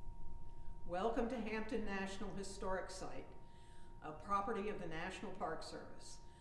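A woman speaks calmly in an echoing room.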